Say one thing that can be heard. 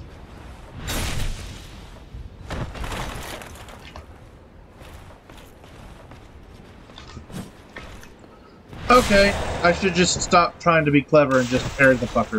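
A sword clashes against a shield with sharp metallic strikes.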